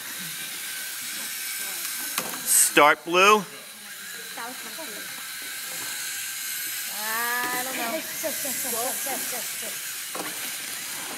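Small robot motors whir.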